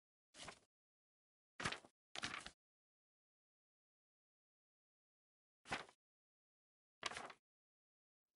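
Menu clicks sound as tabs switch.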